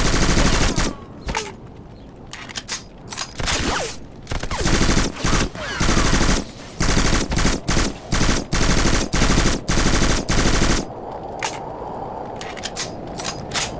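A rifle's magazine is swapped with metallic clicks.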